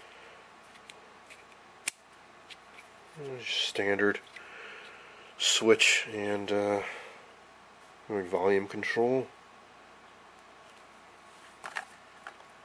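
Small metal parts click softly as they are handled close by.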